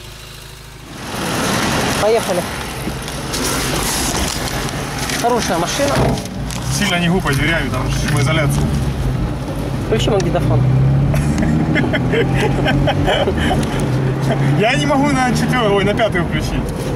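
A car engine hums and rumbles while driving.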